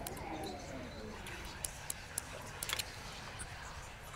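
A padlock's shackle snaps open.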